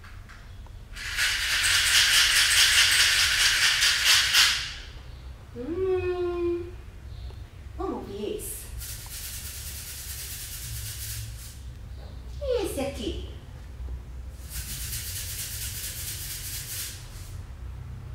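A small shaker rattles with a steady hissing swish.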